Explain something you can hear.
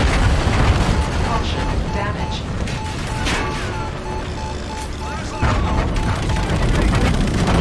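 A missile-warning alarm beeps in a cockpit.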